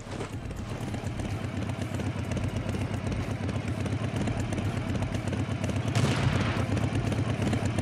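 A small motor truck's engine rattles and hums steadily as it drives.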